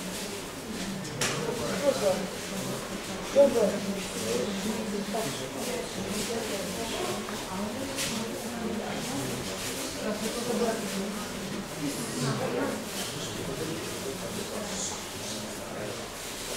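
Several men talk and murmur in a large echoing hall.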